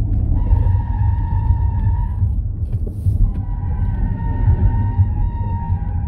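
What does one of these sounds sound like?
A car engine roars at high revs, dropping briefly during a gear change.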